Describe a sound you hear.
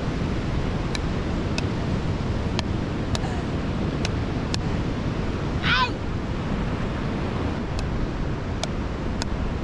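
A ball is struck back and forth with wooden paddles, making sharp knocks.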